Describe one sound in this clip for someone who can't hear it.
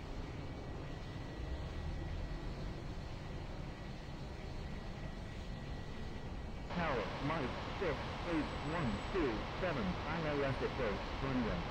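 A jet plane's engines roar steadily as it speeds down a runway.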